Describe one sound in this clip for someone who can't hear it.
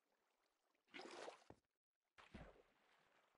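Water splashes softly around a swimmer.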